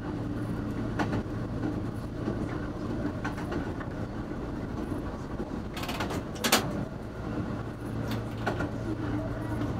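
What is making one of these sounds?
A train engine hums low and steady.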